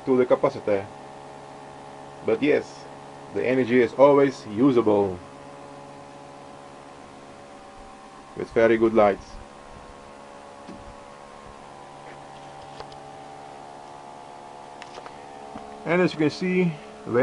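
An electrical device hums steadily.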